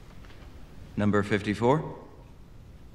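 A man speaks briefly and clearly into a microphone.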